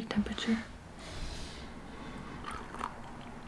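A young woman sips a hot drink from a mug.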